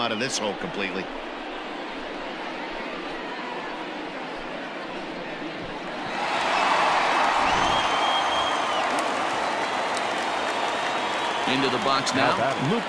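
A large stadium crowd murmurs and cheers, swelling louder partway through.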